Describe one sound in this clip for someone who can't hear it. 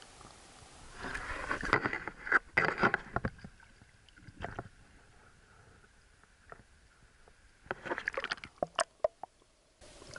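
Water splashes loudly close by.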